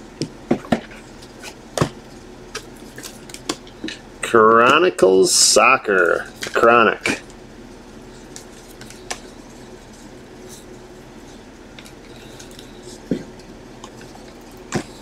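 Card packs rustle and tap as hands shuffle them.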